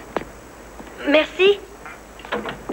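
A woman speaks in a startled voice.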